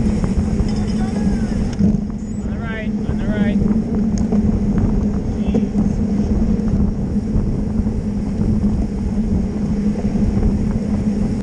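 Bicycle tyres hum steadily on the road.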